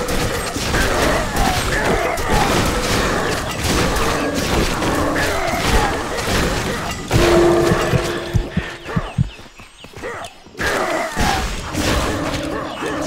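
Beasts growl and snarl.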